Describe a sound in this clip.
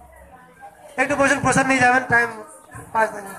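A woman sings loudly up close.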